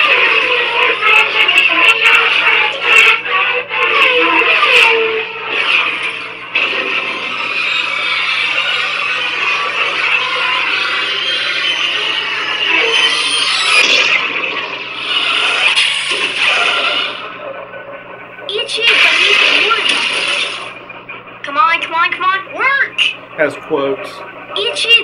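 A toy lightsaber whooshes and crackles as it swings.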